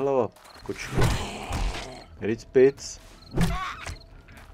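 A heavy club thuds against a body.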